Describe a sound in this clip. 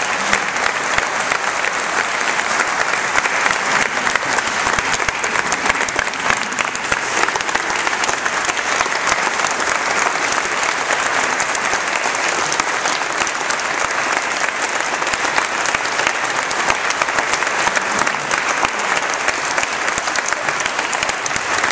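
A crowd claps steadily in a large echoing hall.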